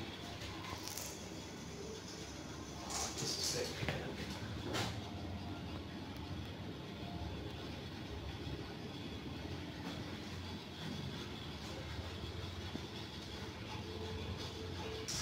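An elevator hums steadily as it moves.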